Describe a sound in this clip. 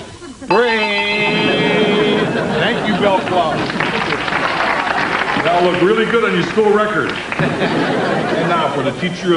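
A crowd laughs and cheers.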